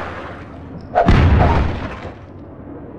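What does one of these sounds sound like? Wooden planks crash and splinter.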